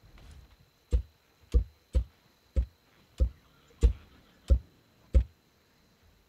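Blocks snap into place with short, sharp clicks in quick succession.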